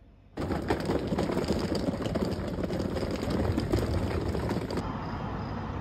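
Suitcase wheels rattle over cobblestones.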